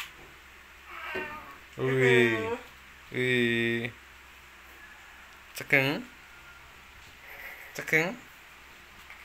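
A baby fusses and cries out in short bursts close by.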